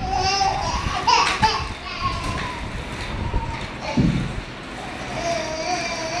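A baby walker's wheels roll across a hard floor.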